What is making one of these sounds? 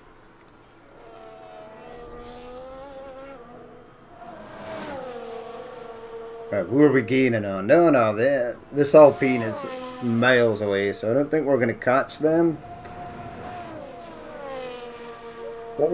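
A racing car engine whines as the car speeds along the track.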